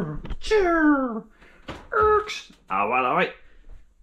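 An oven door swings open with a clunk.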